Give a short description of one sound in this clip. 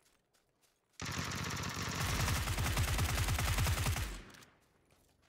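A rifle fires a rapid burst of shots up close.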